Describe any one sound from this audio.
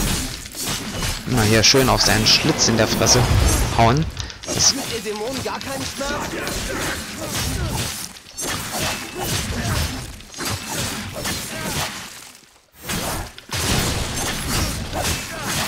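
Blades slash and strike with sharp metallic impacts.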